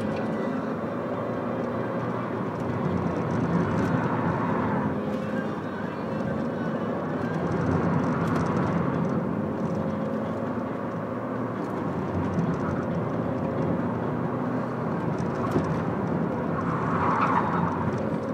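A small hatchback's engine drones and revs, heard from inside the car.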